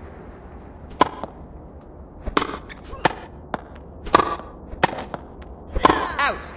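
A tennis racket strikes a ball again and again.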